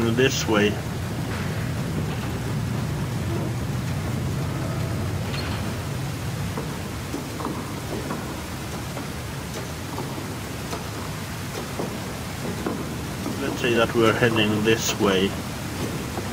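A man speaks into a close microphone in short bursts.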